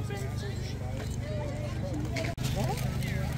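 Children and adults chatter nearby outdoors.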